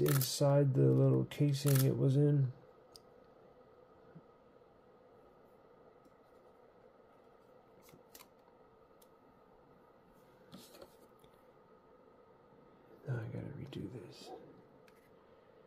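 Paper strips rustle and crinkle as they are handled.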